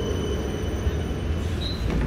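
A tram rolls past close by.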